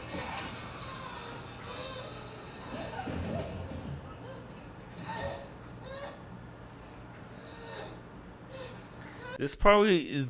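A young woman grunts and yells in strain.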